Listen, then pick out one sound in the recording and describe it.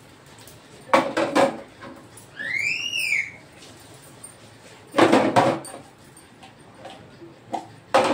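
Dishes clink and clatter as they are washed.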